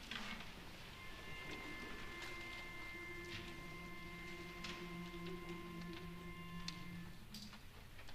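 A choir sings a soft, held chord in a large echoing hall.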